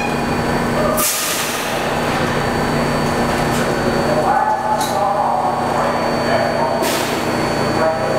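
Air brakes hiss sharply on a subway train.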